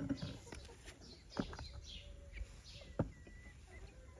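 A glass jar knocks against a wooden table.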